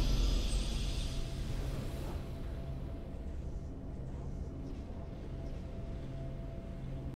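A triumphant fanfare from a video game rings out and slowly fades.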